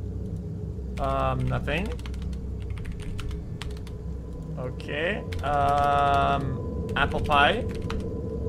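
A young man speaks with animation, in a drawn-out, sing-song voice, close to a microphone.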